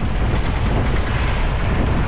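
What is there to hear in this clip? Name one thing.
An auto-rickshaw engine putters close by as it passes.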